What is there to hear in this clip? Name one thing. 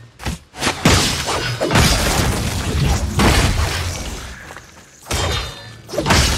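Battle sounds of clashing and explosions rumble on and off.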